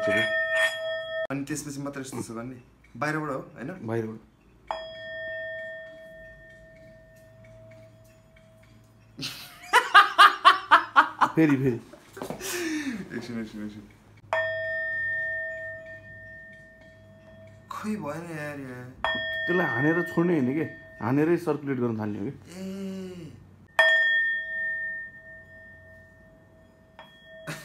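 A singing bowl rings with a clear, lingering tone.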